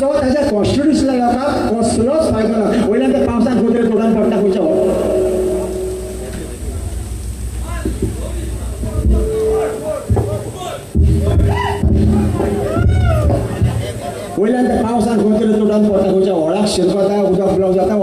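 A live band plays drums, brass and keyboard.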